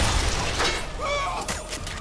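A heavy gun fires with loud booming blasts.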